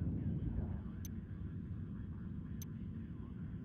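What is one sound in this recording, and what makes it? Short interface clicks sound twice.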